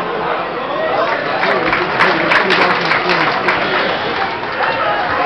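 A crowd claps rhythmically.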